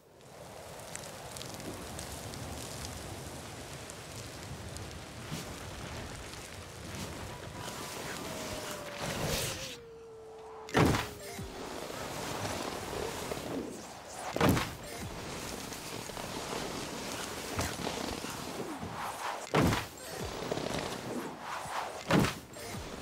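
A snowboard carves and scrapes across snow.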